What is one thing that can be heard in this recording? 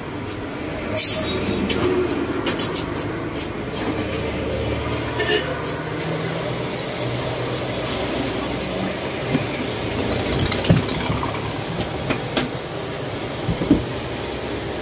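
Rattan knocks and taps softly against a wooden chair frame.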